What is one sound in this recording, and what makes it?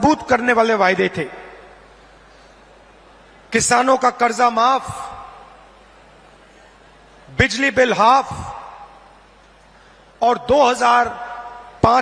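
A man speaks loudly and forcefully through loudspeakers, in short bursts that echo and trail off between pauses.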